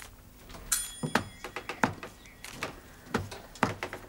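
Footsteps cross a room.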